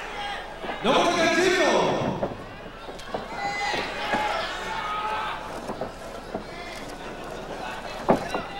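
A crowd cheers loudly in a large hall.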